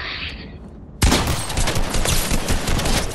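A gun fires rapidly in bursts.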